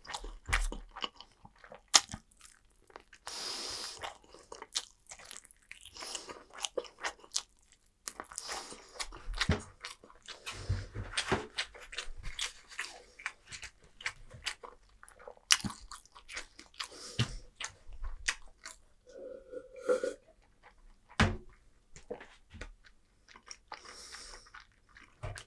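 A person chews food loudly and wetly close to a microphone.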